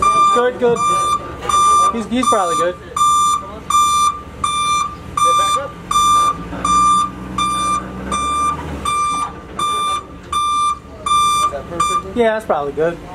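A truck's warning beeper beeps rapidly and steadily.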